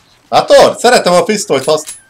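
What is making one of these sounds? A man reloads a gun with metallic clicks.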